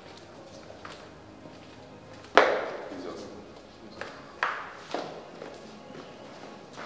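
Footsteps shuffle down stairs.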